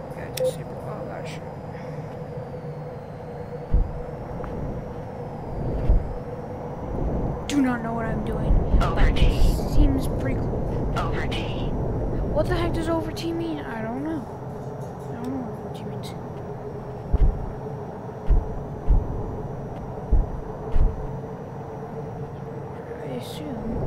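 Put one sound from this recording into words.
A jet engine roars with a steady low drone.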